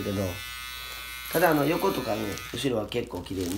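An electric hair clipper buzzes close by.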